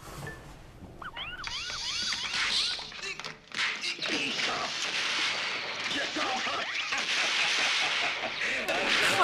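A video game plays bouncy electronic sound effects.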